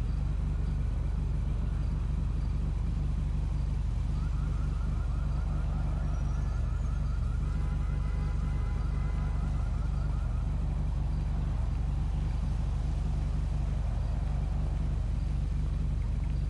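A motorbike engine idles steadily.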